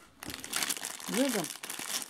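A plastic wrapper crackles as it is handled.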